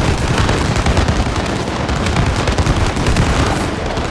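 Explosions boom with rumbling blasts.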